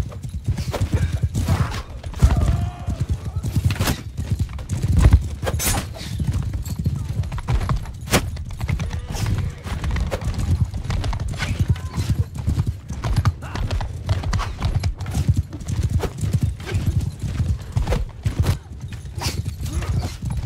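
Horse hooves pound steadily on the ground.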